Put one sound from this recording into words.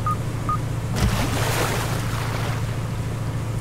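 A buoy splashes into the water.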